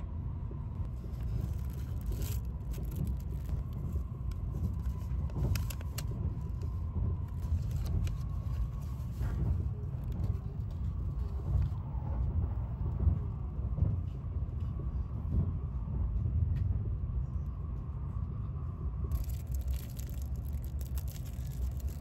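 Plastic wrapping crinkles and rustles as it is unwrapped.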